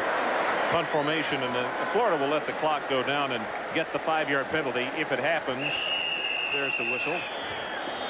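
A young man shouts signals loudly.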